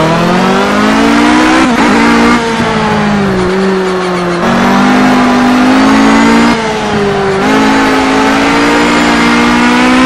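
A racing car engine roars loudly, revving up and dropping as the gears shift.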